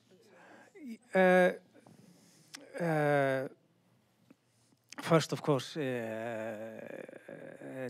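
A second man speaks into a microphone with animation, pausing often.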